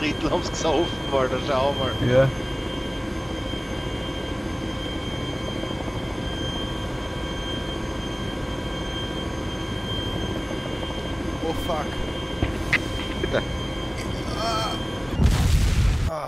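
A helicopter's rotor and engine drone steadily.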